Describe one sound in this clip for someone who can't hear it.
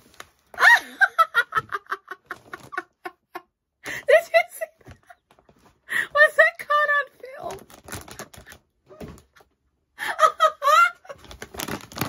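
A woman laughs loudly and shrieks with excitement close to a microphone.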